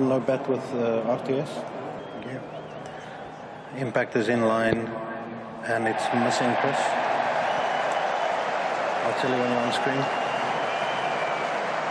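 A large crowd murmurs in an open stadium.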